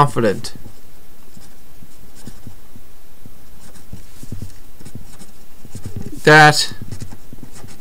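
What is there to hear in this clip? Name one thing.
A felt-tip marker scratches and squeaks across paper.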